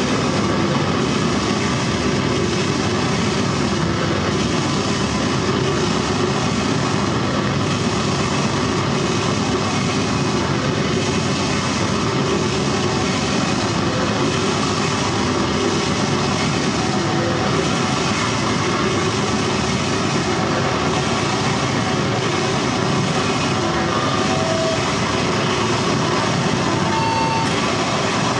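Loud electronic music booms through speakers.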